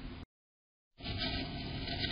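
A bird rustles in dry nest straw.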